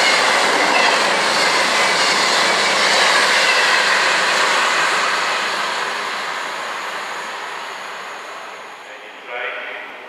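A train rushes past close by with a loud roar, then fades into the distance.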